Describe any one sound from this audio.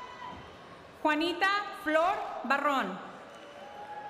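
A woman speaks clearly in a large echoing hall.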